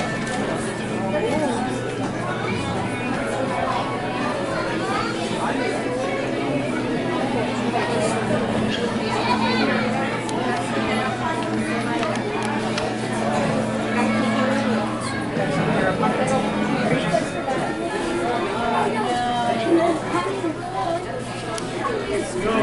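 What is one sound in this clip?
Women chat quietly nearby amid a soft murmur of voices.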